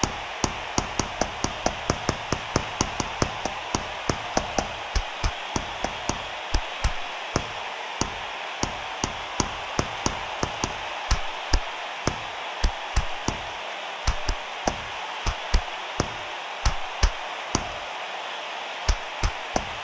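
Gloved punches land with sharp, rapid thuds.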